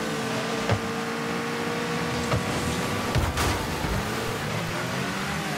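A toy-like car engine hums steadily and revs.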